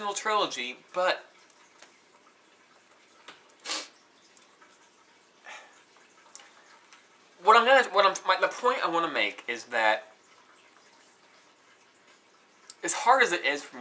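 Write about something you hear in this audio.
A young man talks animatedly close by, in short bursts with pauses.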